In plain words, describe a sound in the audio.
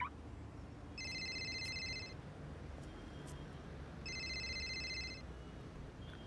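A mobile phone rings with short electronic beeps.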